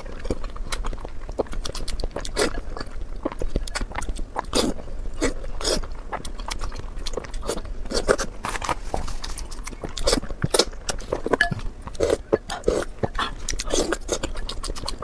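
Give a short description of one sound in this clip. A woman slurps and chews food wetly close to a microphone.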